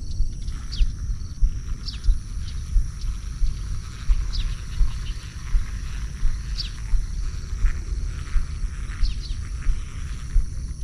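Wind buffets the microphone outdoors in low, gusty rumbles.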